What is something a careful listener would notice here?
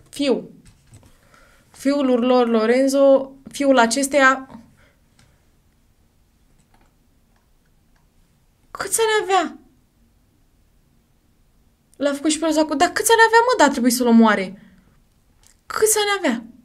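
A young woman reads aloud with animation, close to a microphone.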